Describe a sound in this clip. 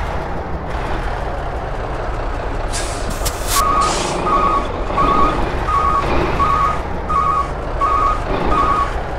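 A truck engine rumbles at idle.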